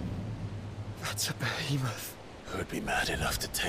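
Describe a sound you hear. A young man calls out in surprise.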